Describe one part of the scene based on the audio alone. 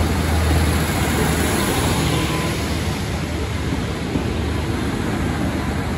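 A train rumbles past close by on the tracks.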